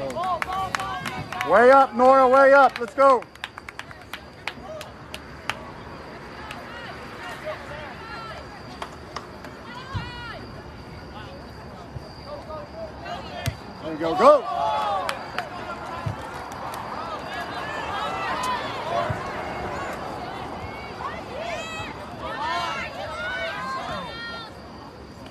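Young women players call out to each other from across a field.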